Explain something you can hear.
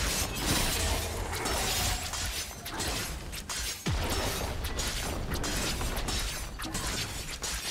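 Magic blasts and weapon hits crackle and clash in a fast battle.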